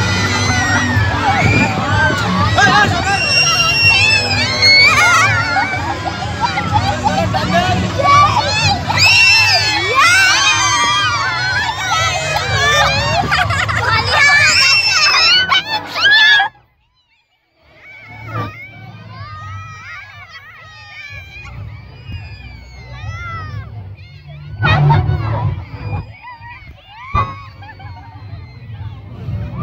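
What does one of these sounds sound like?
A large crowd of people chatters loudly outdoors.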